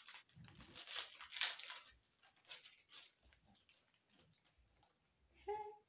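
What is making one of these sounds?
Plastic packaging rustles in a woman's hands.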